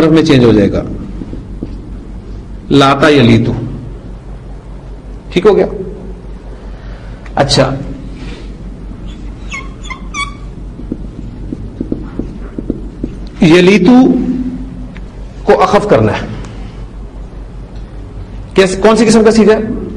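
A man speaks calmly in short phrases with long pauses, heard through a microphone.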